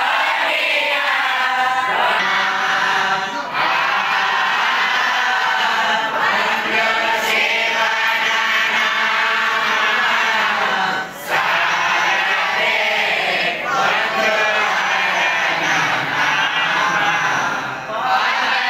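An elderly man speaks calmly into a microphone, heard through a loudspeaker in an echoing room.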